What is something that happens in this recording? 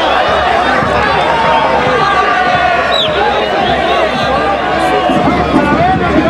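A large crowd of spectators cheers and chatters loudly outdoors.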